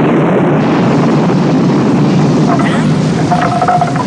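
A loud explosion booms and roars.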